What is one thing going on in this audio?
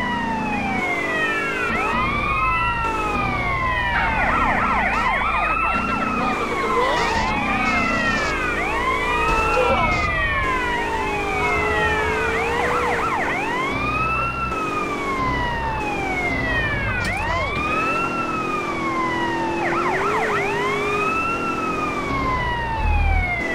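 A car engine roars as it speeds along.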